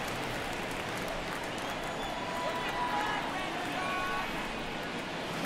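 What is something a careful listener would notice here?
A large stadium crowd murmurs steadily.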